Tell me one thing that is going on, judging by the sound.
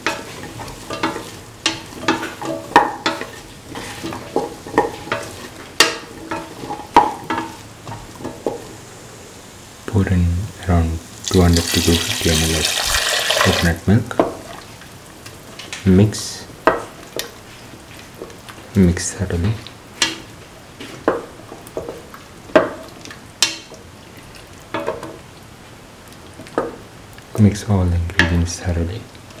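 A spatula scrapes and knocks against a metal pot.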